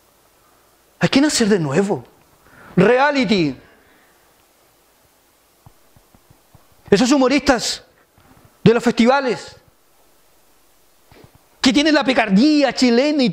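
A middle-aged man preaches with feeling into a microphone, in bursts with pauses.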